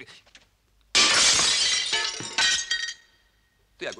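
A mirror shatters loudly, with glass crashing and tinkling.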